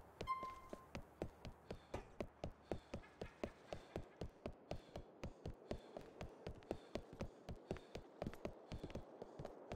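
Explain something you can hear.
Footsteps run quickly on a hard surface.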